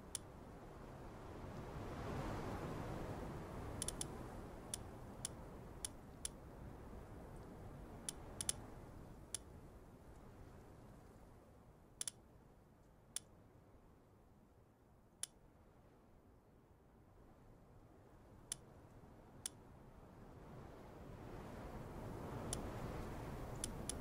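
Short, crisp menu clicks tick now and then.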